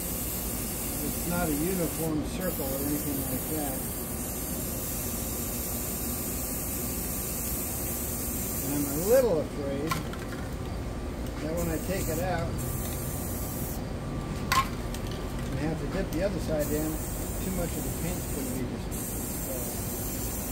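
Spray paint hisses steadily from aerosol cans.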